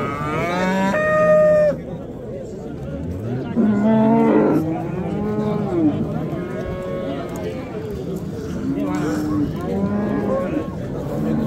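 A crowd of men talk loudly all around, close by.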